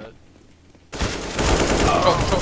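A rifle fires a burst of shots.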